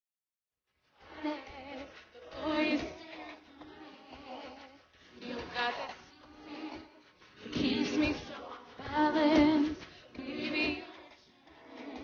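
A group of men and women sing backing harmonies without instruments.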